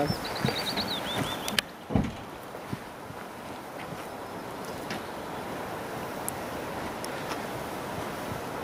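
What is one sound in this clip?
Heavy footsteps thud and crunch on the forest floor as a man runs.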